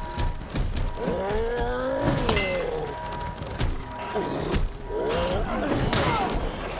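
A monster shrieks with a rising and falling cry.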